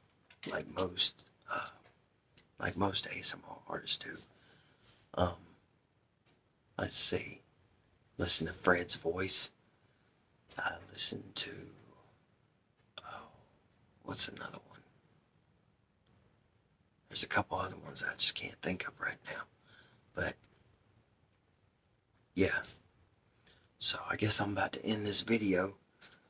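A man speaks softly and casually, close to a microphone, with pauses.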